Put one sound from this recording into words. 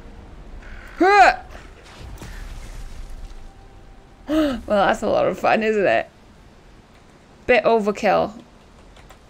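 A young woman speaks and exclaims with animation close to a microphone.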